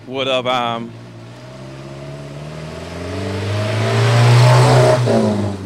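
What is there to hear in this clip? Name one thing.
A truck engine rumbles nearby and grows louder.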